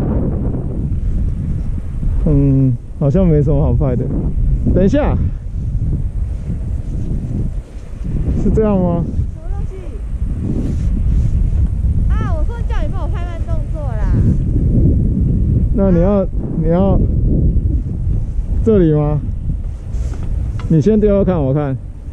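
Wind rumbles against a nearby microphone outdoors.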